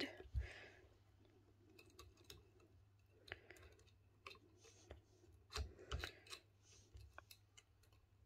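Small metal parts click and tap as they are handled.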